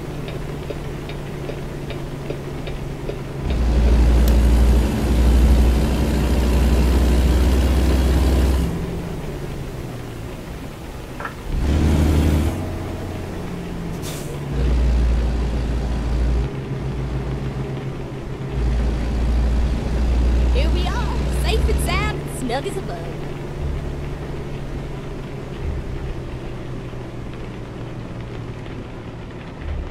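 A heavy truck engine rumbles steadily, swelling louder at times.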